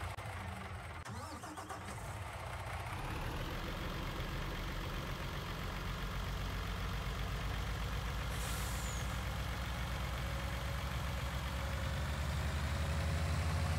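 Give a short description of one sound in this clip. A truck engine rumbles steadily and grows louder as the truck speeds up.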